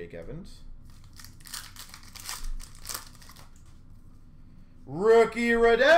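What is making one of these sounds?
Plastic card wrappers crinkle and rustle under handling.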